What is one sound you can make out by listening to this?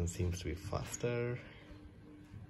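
A phone plays a short startup chime.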